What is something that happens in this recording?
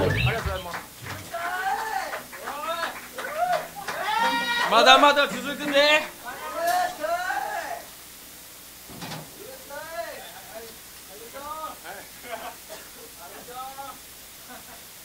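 A young man speaks through a microphone over loudspeakers, pausing often.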